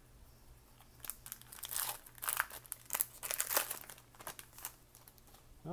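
A foil wrapper crinkles and tears as hands open it.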